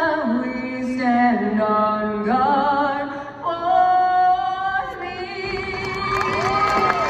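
A woman sings through loudspeakers, echoing in a large arena.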